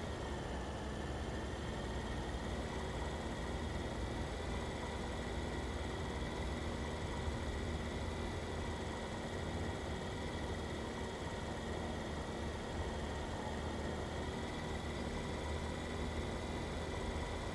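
A passenger car engine hums, cruising at a steady low speed.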